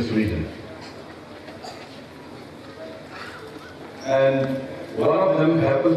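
A middle-aged man speaks formally through a microphone and loudspeakers, outdoors.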